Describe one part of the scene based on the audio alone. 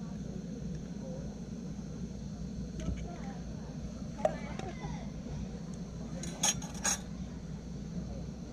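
A camping gas stove hisses steadily.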